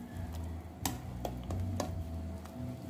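A metal ladle clinks against a pot.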